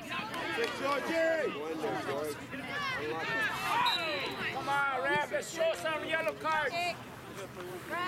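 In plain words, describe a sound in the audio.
Spectators shout and cheer loudly outdoors.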